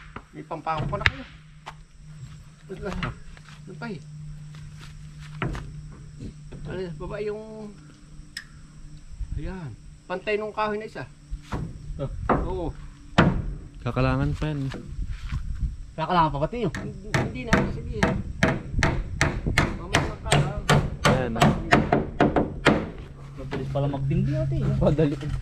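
A young man talks nearby in a casual way.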